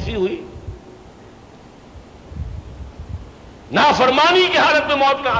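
An elderly man speaks emphatically into a nearby microphone.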